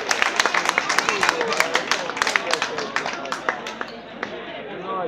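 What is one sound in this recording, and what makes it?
A crowd claps and applauds outdoors.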